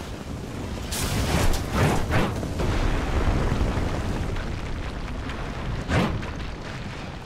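Shell explosions boom and crack nearby.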